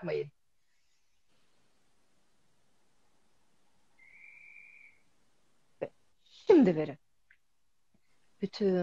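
A woman speaks with animation over an online call, in short bursts.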